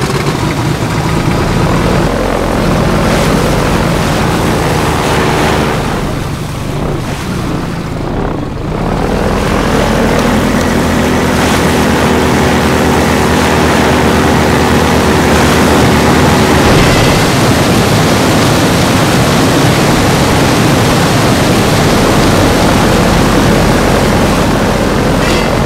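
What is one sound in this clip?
Water rushes and splashes under a boat's hull.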